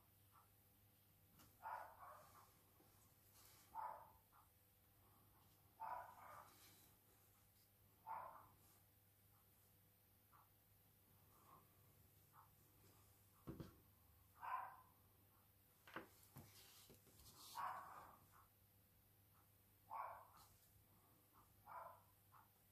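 A paintbrush softly swishes and dabs on paper.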